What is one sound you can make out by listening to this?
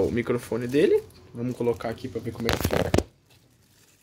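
A plastic bag crinkles in a hand close by.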